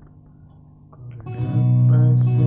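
Guitar chords ring out loudly.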